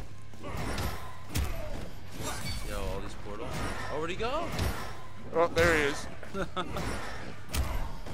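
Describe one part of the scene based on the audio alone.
Green magic blasts whoosh and crackle.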